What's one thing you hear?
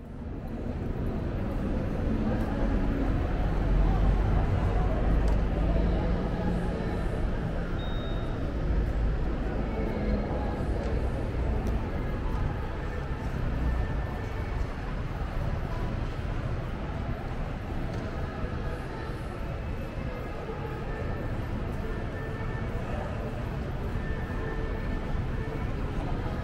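Footsteps and a distant crowd murmur fill a busy outdoor space.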